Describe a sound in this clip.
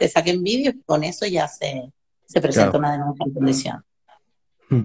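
A middle-aged woman talks with animation over an online call.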